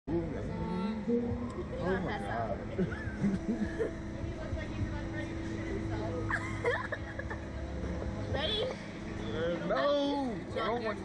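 A young man talks and laughs excitedly close by.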